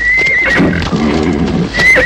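Horses' hooves clop on a dirt path.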